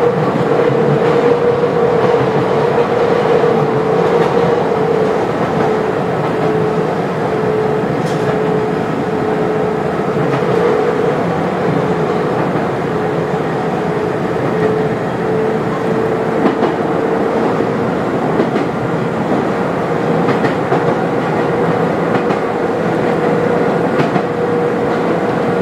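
A train's motor hums with a steady tone.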